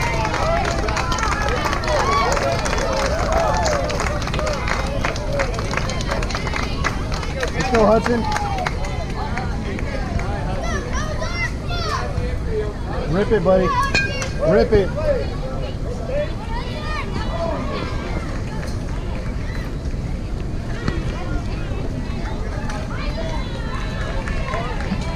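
A crowd of people talks and cheers outdoors at a distance.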